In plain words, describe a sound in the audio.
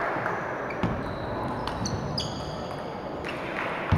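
Shoes squeak sharply on the floor.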